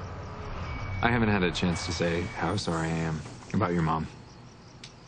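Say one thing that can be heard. A young man speaks quietly and calmly close by.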